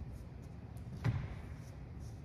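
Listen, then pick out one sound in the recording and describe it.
A chair knocks on a wooden floor.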